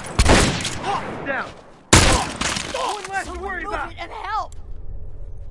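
Heavy blows land in a close fight.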